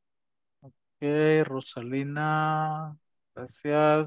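A man speaks with animation through an online call.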